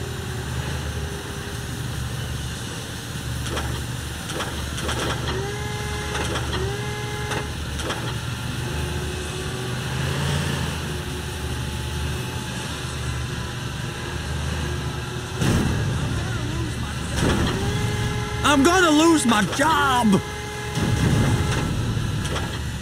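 A heavy vehicle engine rumbles low and steady.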